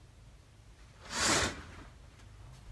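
Curtains slide open with a quick swish.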